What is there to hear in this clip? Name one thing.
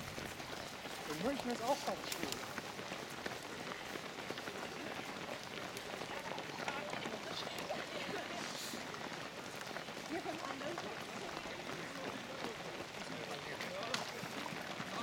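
A crowd of runners murmurs and calls out nearby.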